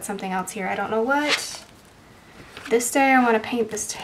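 A page of a spiral notebook turns with a papery flip.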